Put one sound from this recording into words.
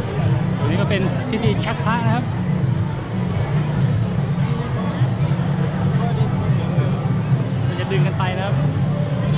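A crowd chatters loudly outdoors.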